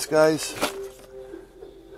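Sheets of paper rustle as they are handled.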